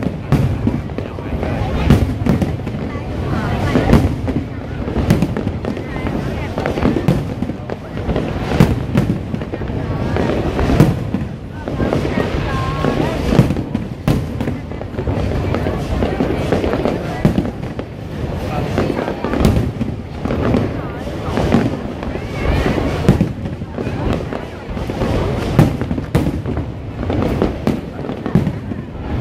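A large crowd cheers and chatters nearby.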